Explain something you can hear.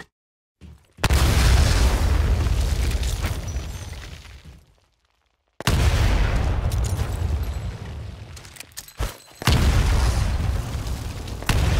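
Grenades explode with deep, booming roars that slowly fade away.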